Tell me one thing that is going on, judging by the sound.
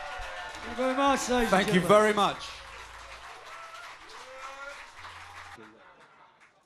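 A band plays electric guitars and drums.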